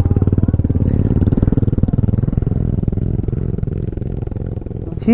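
A motorcycle engine idles with a steady, rapid low putter.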